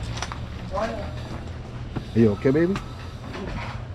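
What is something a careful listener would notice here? Footsteps climb a set of stairs.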